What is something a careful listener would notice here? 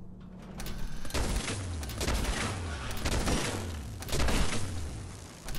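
An electric gun crackles and zaps in sharp bursts.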